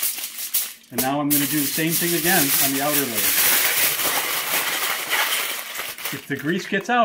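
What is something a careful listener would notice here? Aluminium foil crinkles and rustles as it is folded.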